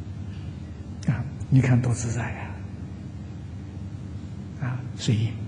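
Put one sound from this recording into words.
An elderly man speaks slowly and calmly into a microphone.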